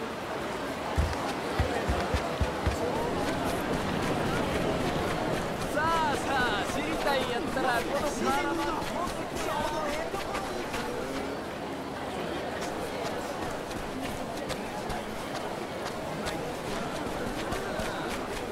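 Footsteps run over a dirt road.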